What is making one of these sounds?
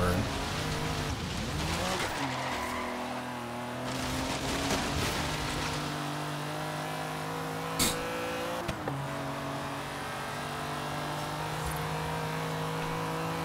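A car engine revs and roars as it accelerates, rising in pitch with each gear.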